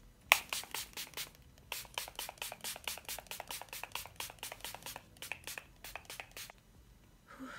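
A spray bottle spritzes rapidly over and over.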